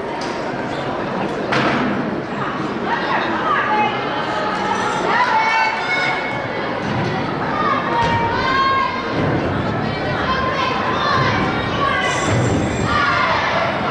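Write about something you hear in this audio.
A gymnast swings on a bar with creaks and thuds.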